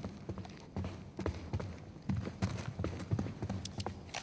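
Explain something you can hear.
Footsteps fall across an indoor floor.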